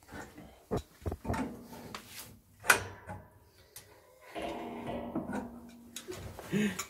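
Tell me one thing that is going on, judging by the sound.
A wrench clicks and scrapes against a metal fitting.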